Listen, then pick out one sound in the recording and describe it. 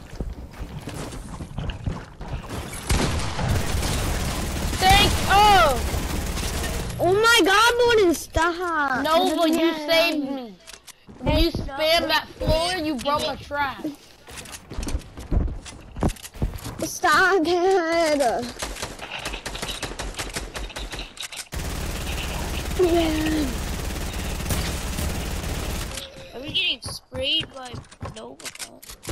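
Wooden walls and ramps thud into place.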